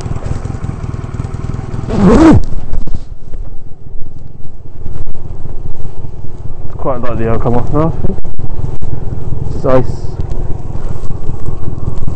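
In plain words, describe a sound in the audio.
Motorcycle tyres crunch over snow.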